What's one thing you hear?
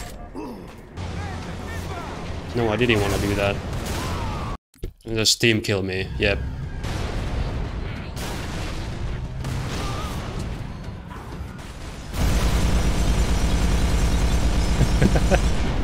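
Gunfire and explosions boom from a video game.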